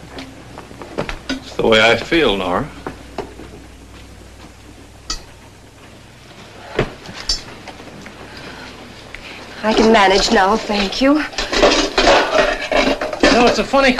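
Metal pots and pans clank together.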